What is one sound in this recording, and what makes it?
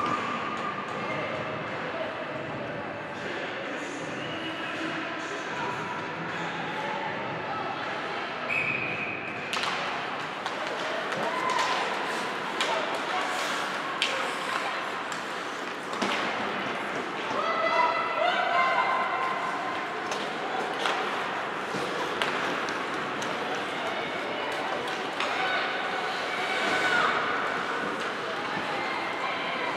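Skates scrape across the ice.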